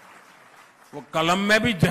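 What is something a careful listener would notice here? An elderly man speaks firmly through a microphone over loudspeakers.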